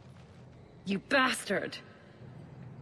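A woman cries out angrily.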